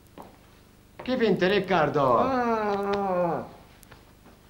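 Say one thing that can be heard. Two men greet each other loudly as they embrace.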